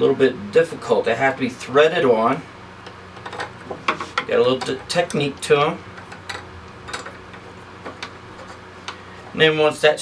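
A metal bracket clicks and rattles as it is fitted by hand.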